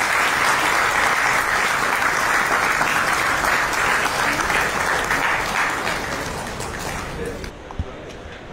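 People applaud steadily.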